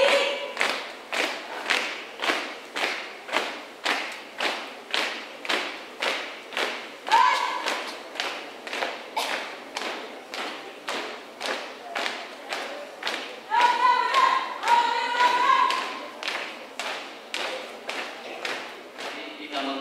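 Feet stamp on pavement in a steady marching rhythm.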